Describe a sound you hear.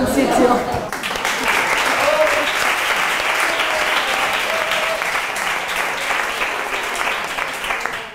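Many adults chatter at once in a lively, busy room.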